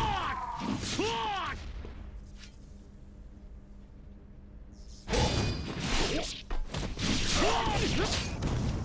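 Blades slash and clang in a fight.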